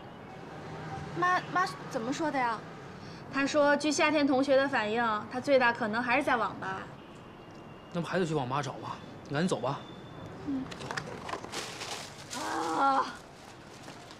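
A young woman speaks in a worried voice, close by.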